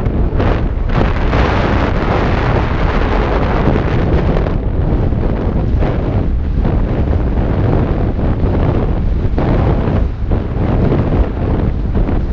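Bike tyres rumble and crunch over a dirt trail at speed.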